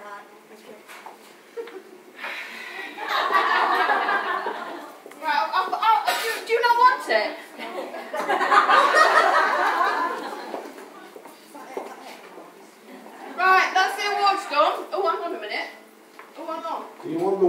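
A woman talks and laughs close by.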